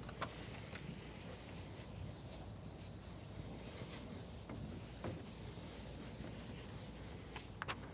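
A chalkboard eraser rubs across a board.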